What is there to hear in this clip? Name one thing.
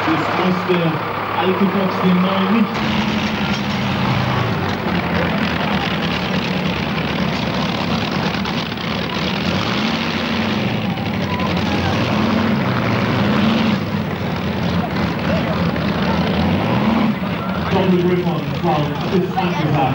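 A tractor pulling engine roars loudly and revs up and down.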